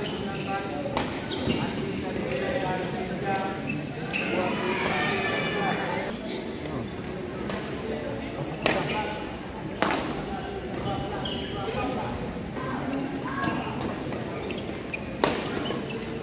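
Rackets sharply strike a shuttlecock in a large echoing hall.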